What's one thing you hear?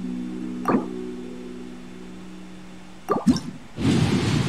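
A menu chimes.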